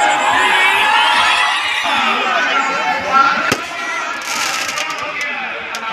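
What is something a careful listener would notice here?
A large crowd outdoors cheers and shouts loudly.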